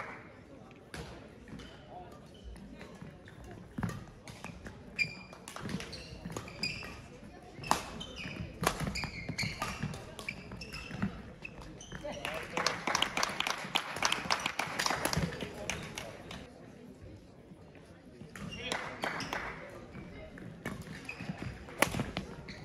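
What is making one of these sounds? Shuttlecocks are struck with rackets with sharp pops in a large echoing hall.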